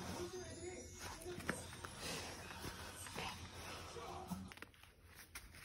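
A hand rubs and pats a dog's fur.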